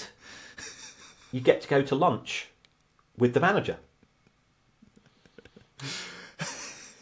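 A young man laughs.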